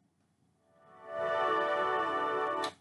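Loud, bright electronic game music starts up suddenly.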